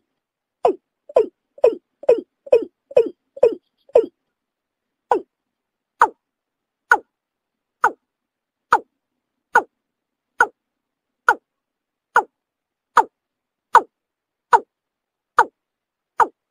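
A bird calls with short, sharp notes repeated again and again.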